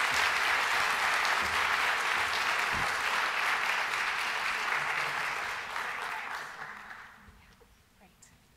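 An audience applauds in a large hall, then fades out.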